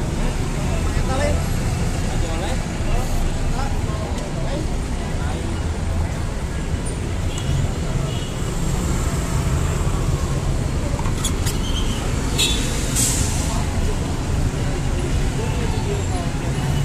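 Tour bus engines idle outdoors.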